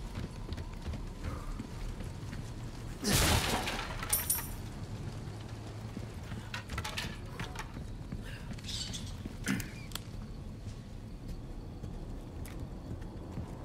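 Footsteps tread on wooden boards and rocky ground.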